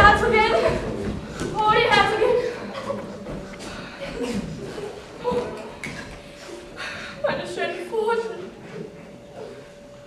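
A girl sobs behind her hands.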